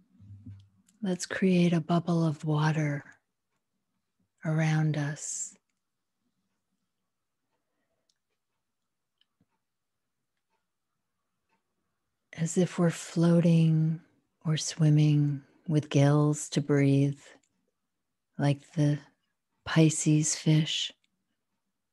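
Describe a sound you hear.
A middle-aged woman speaks calmly over an online call, in bursts with pauses.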